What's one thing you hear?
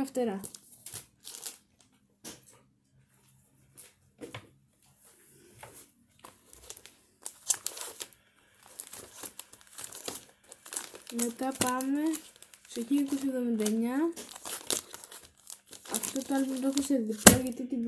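A record sleeve rustles and crinkles in a young woman's hands.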